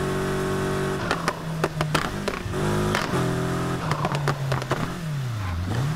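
A car engine pops and crackles as the driver lifts off.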